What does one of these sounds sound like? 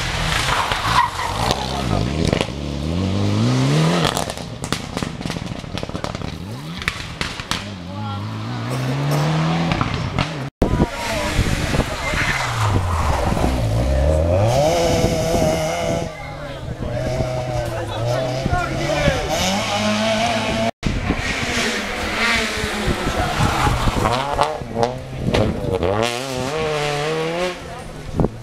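Rally car engines rev hard and roar past close by, one after another.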